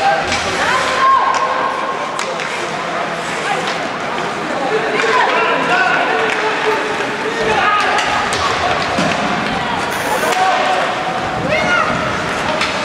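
Young players shout to each other across the ice.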